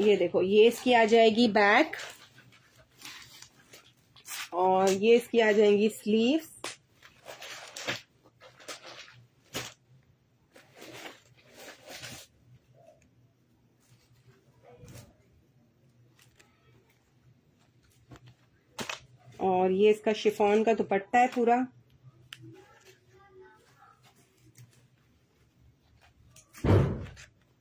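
Cloth rustles as it is unfolded and shaken.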